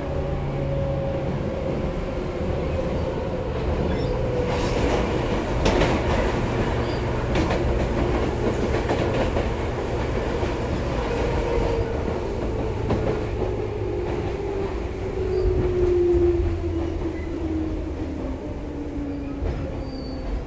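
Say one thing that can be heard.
An electric train approaches with a steady rumble and a slowly falling whine.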